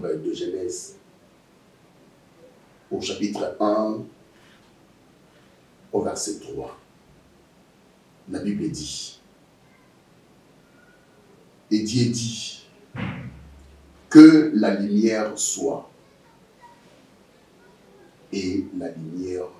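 A man speaks calmly and slowly, in short phrases with long pauses.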